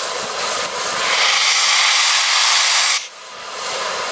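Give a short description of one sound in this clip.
Steam blasts out of a steam locomotive with a loud hiss.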